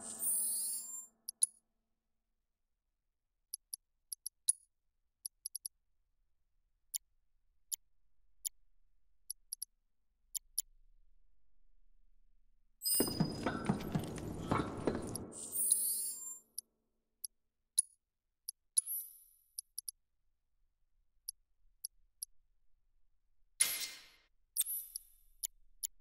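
Soft electronic blips tick now and then as menu options change.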